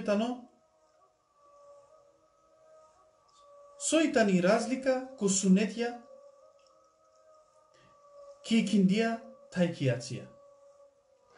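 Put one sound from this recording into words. A man reads aloud slowly in a calm voice, close by.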